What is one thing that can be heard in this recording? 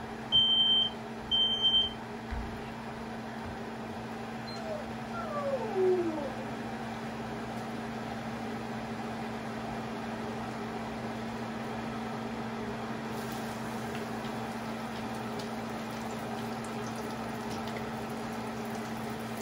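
Food sizzles steadily in a frying pan.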